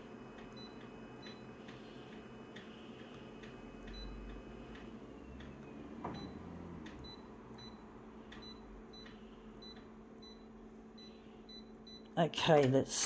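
A touchscreen beeps softly as a finger taps it.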